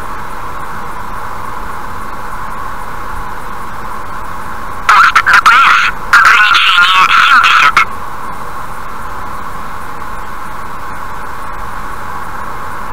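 Tyres roar steadily on a highway as a car drives at speed.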